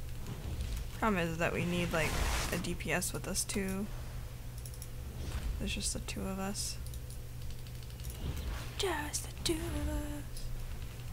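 A young woman speaks into a close microphone with animation.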